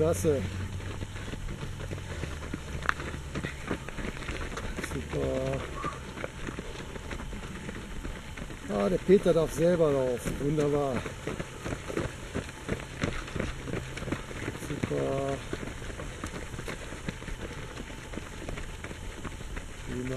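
Runners' footsteps crunch on a gravel track outdoors.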